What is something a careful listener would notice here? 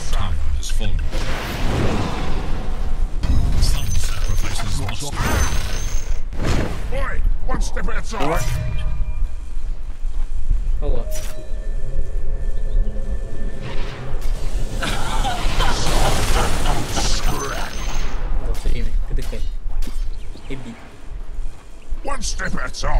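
Magic spells crackle and blast in a video game battle.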